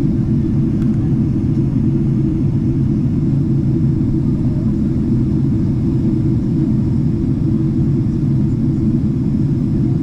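Jet engines roar steadily in a low, constant rumble inside an airliner cabin.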